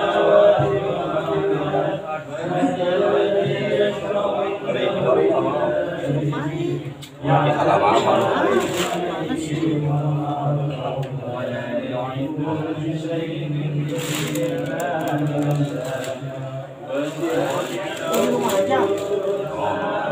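A group of men chant together in unison close by.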